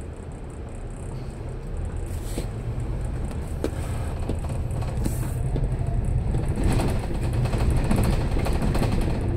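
An engine grows louder as a vehicle speeds up.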